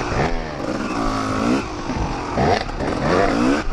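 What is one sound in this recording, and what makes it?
Tyres squelch through mud.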